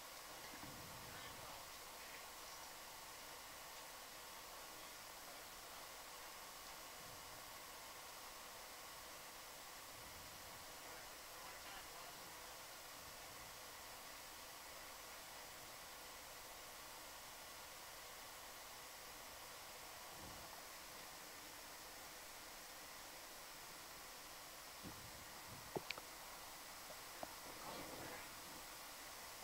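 A machine hums steadily underwater.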